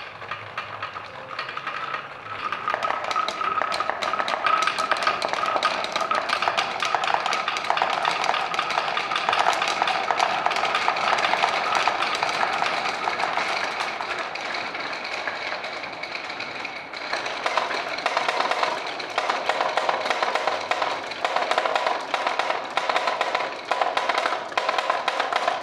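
Marbles roll and clatter down wooden tracks.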